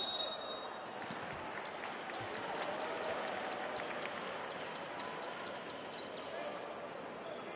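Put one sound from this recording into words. A crowd claps in a quick, steady rhythm.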